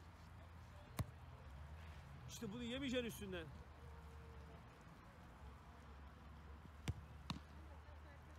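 A football is kicked hard with a sharp thud.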